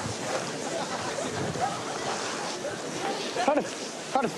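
A crowd of beachgoers chatters in the background.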